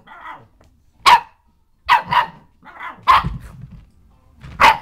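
A dog barks sharply several times close by.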